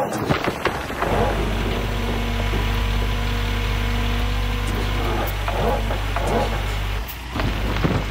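A heavy excavator engine rumbles steadily.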